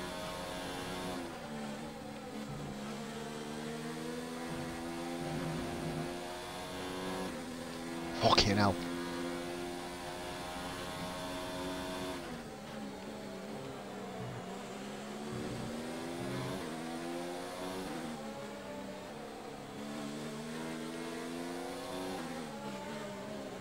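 A racing car engine roars, revving up and down through the gears.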